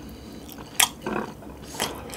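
Wooden chopsticks tap against a small bowl.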